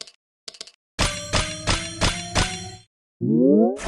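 Bright game tones ring out in a rising chain.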